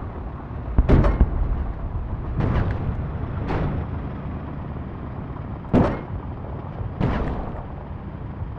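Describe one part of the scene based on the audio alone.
Gunfire bursts out in short volleys.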